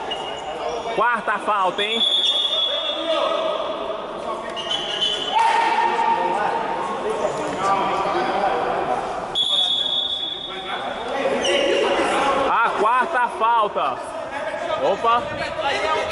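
Sneakers squeak sharply on an indoor court.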